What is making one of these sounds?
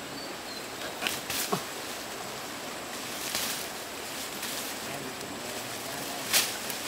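A machete chops through leafy branches.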